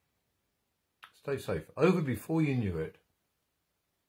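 An older man speaks calmly and close up.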